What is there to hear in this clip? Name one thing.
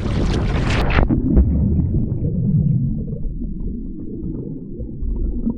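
Underwater, sound is dull and muffled with faint crackling.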